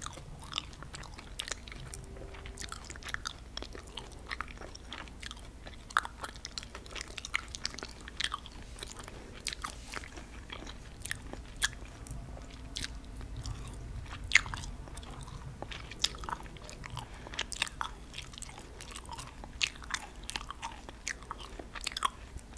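A woman crunches candy close to a microphone.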